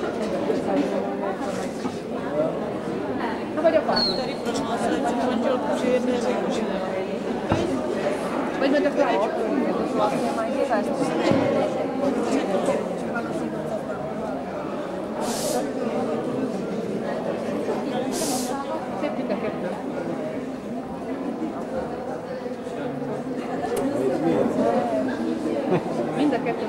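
A crowd of people chatters steadily in a large echoing hall.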